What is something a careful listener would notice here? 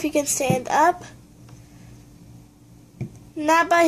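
A plastic toy figure knocks lightly against a table.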